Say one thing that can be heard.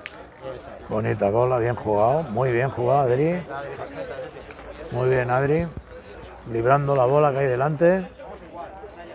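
Young men talk loudly and with animation close by, outdoors.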